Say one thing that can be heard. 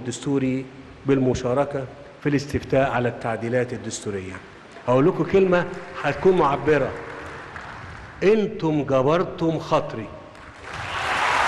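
A man speaks firmly into a microphone, heard through loudspeakers.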